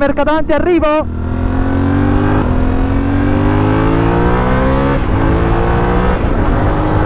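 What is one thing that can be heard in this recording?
A motorcycle engine revs up as it accelerates, shifts gear and keeps climbing in pitch.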